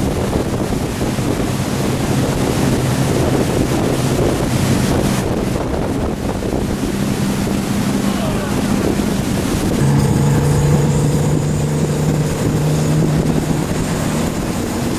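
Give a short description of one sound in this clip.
A wakeboard carves through choppy water, throwing up hissing spray.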